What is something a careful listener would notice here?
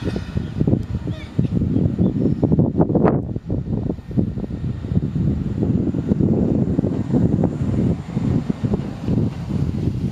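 An electric train pulls away and rumbles past, its wheels clattering on the rails.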